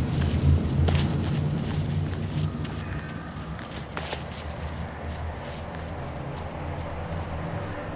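Footsteps crunch quickly over soft ground.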